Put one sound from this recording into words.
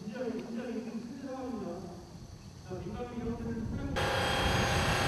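Men cough and splutter close by.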